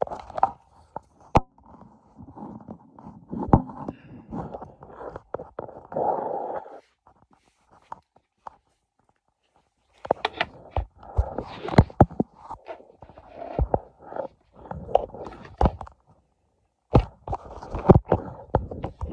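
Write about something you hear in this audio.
Clothing rustles right against the microphone.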